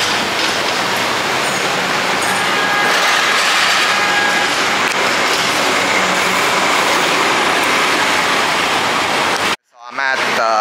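A city bus engine rumbles as the bus pulls away.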